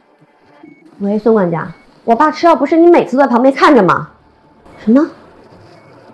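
A young woman talks anxiously into a phone, close by.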